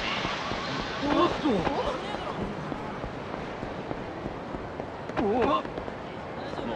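Men shout as they scuffle.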